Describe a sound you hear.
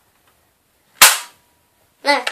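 A toy foam dart blaster fires with a sharp snap.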